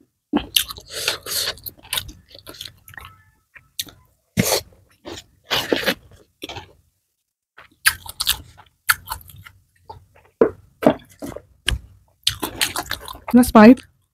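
Fried rice crunches and rustles as fingers pick it up.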